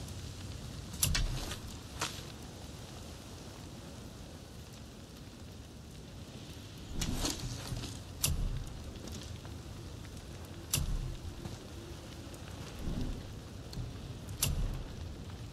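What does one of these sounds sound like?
Short interface clicks and chimes sound now and then.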